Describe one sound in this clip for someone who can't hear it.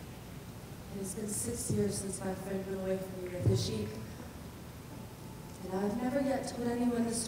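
A young woman speaks clearly in a large hall.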